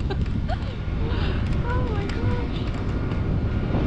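A young woman speaks briefly and cheerfully near the microphone.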